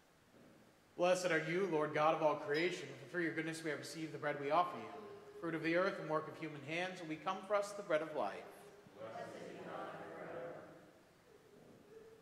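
A man speaks steadily through a microphone in an echoing room.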